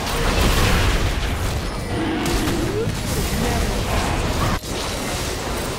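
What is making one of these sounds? Game spell effects whoosh and crackle during a fight.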